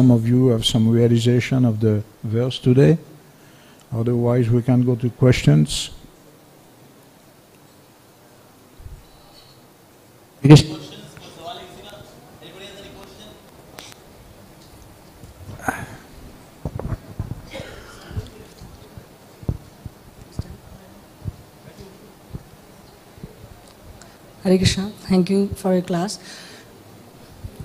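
An older man speaks calmly into a microphone, with long pauses.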